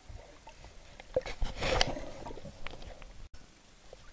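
Water splashes and gurgles close by, heard from under the surface.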